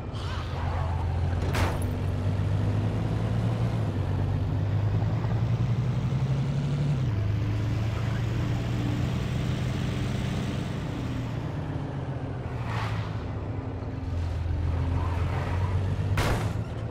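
Tyres roar on a road surface.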